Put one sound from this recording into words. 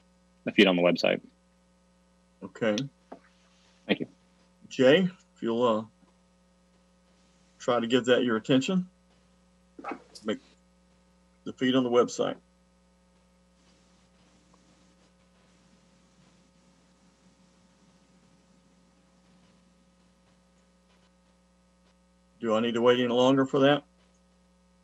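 A man speaks in short bursts through an online call.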